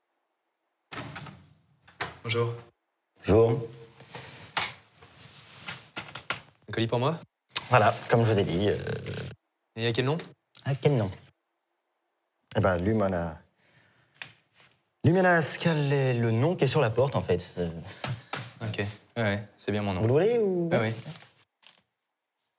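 A young man speaks casually up close.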